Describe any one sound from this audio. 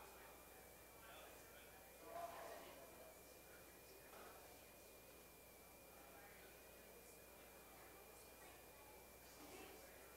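Several people murmur and talk quietly in a large echoing hall.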